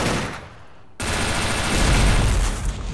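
A rifle shot cracks and echoes.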